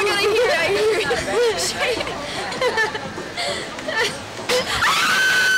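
Young women talk and laugh excitedly at close range.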